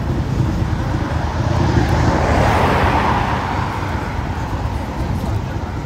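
A car drives past and fades away.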